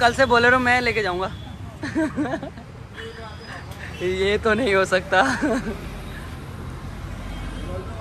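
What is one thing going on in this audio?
Street traffic hums in the background.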